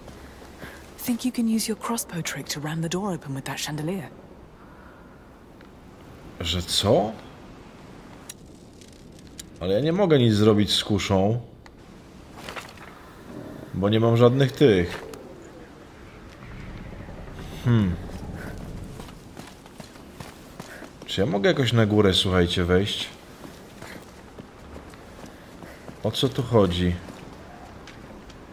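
A man talks into a close microphone in short bursts.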